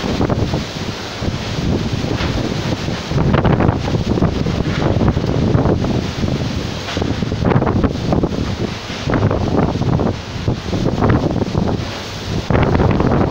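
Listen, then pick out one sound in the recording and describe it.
A fierce storm wind roars and gusts outdoors, buffeting the microphone.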